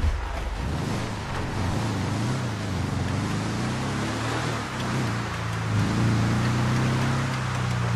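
A buggy engine revs and drones, rising and falling in pitch.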